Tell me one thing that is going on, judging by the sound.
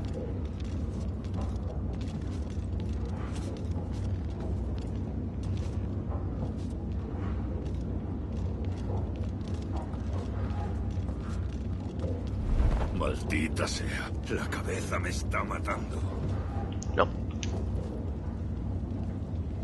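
Soft footsteps creak on wooden boards.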